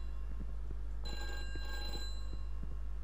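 A bell rings briefly.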